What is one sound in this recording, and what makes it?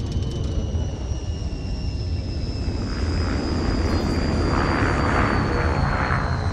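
A spacecraft engine whines with a slowly falling pitch.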